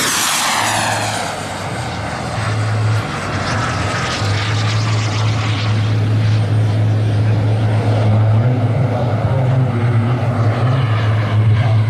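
A model jet engine roars and fades as it climbs away.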